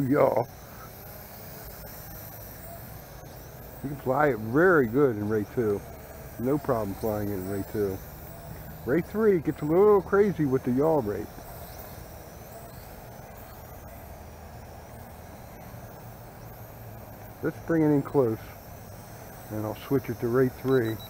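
A small drone buzzes steadily as it flies nearby.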